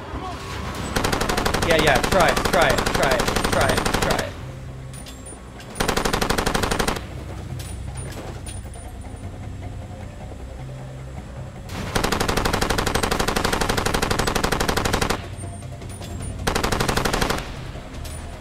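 A gun fires rapid bursts.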